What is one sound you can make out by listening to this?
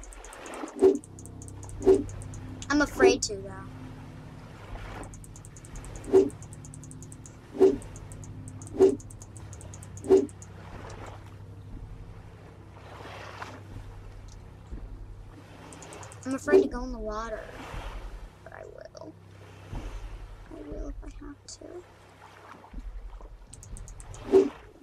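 Water laps and sloshes gently close by.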